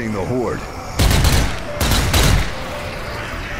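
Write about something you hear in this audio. Gunshots ring out loudly, twice in quick succession.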